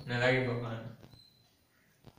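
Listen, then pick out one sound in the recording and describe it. A young man speaks briefly and loudly, close by.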